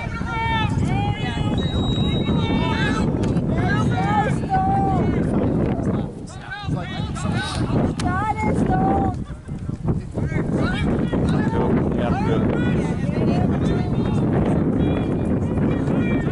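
Young men shout and call out to each other across an open field.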